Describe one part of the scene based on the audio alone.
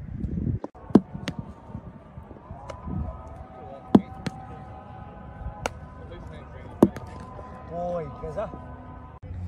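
A cricket ball smacks sharply into wicketkeeping gloves, again and again.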